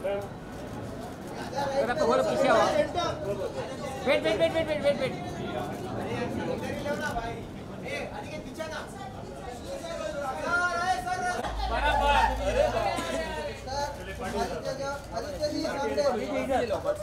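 Several men call out and shout nearby in a noisy crowd.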